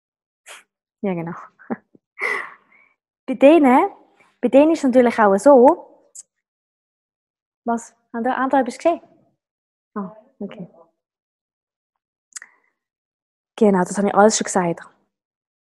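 A woman talks close to a microphone, calmly and with pauses.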